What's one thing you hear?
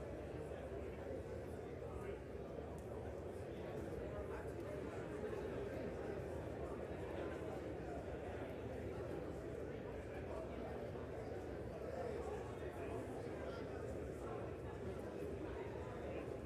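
Many voices murmur and chatter in a large echoing hall.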